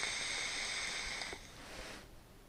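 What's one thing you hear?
A vape device hisses as a man draws on it.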